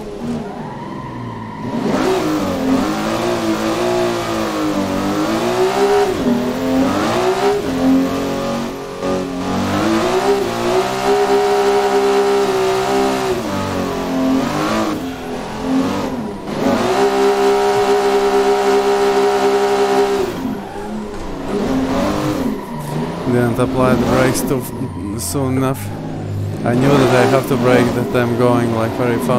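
A racing car engine revs high and drops with each gear change.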